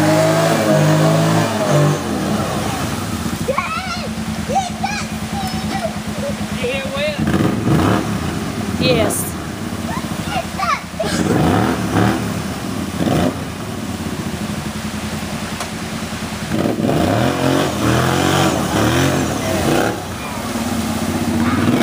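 Water splashes under a quad bike's wheels.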